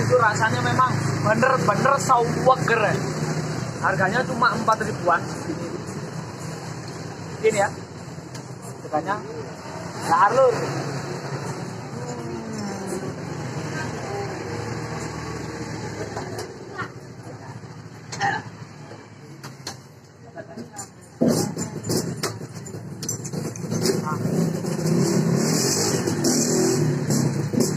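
A spoon clinks against a glass.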